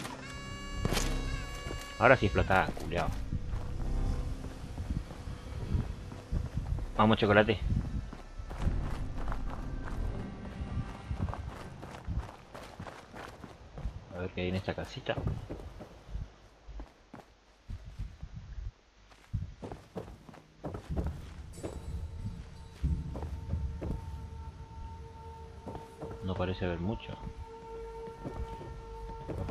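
Footsteps crunch and thud on hard ground and wooden floors.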